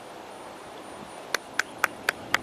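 A putter taps a golf ball once.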